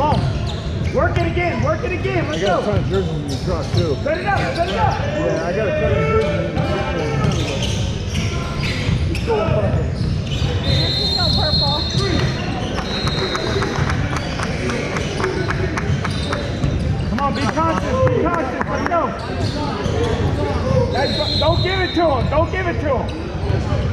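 Young people shout and call out across the echoing hall.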